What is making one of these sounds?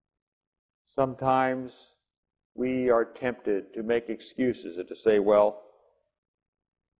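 An elderly man speaks calmly into a microphone in a slightly echoing room.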